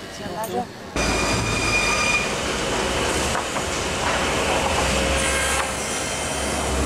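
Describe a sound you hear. Machinery hums and rattles loudly.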